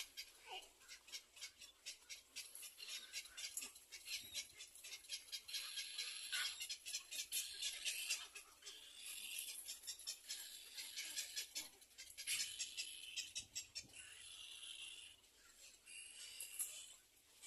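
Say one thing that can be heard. A bird calls with rapid, high, rasping chirps close by.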